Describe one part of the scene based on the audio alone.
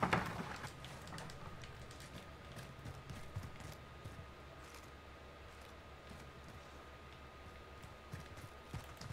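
Footsteps thud steadily on hard floors.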